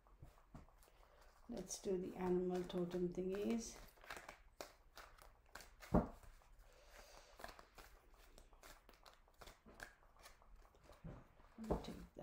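Cards shuffle and tap together.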